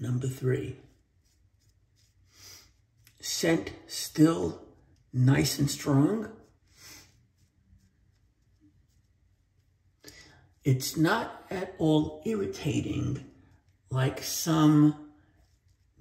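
A shaving brush swishes lather on a man's face.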